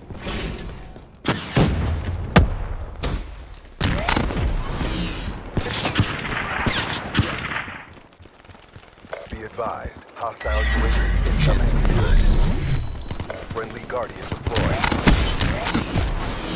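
Gunfire cracks in a video game.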